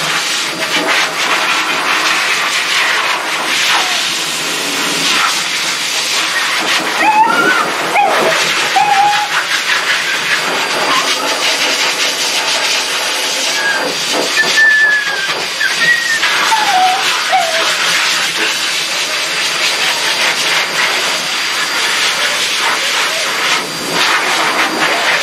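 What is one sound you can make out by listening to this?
A blow dryer hisses and roars steadily close by.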